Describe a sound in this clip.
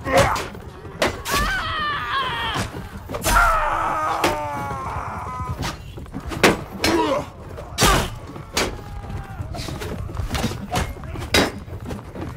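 Steel blades clash and thud against shields.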